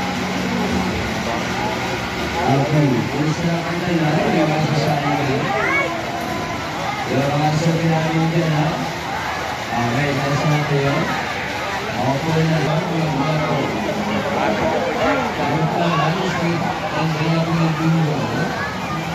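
Cheerful music plays loudly from a turning carousel.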